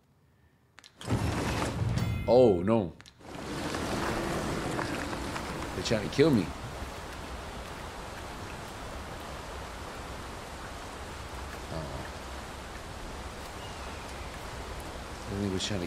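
Rushing water roars loudly and steadily.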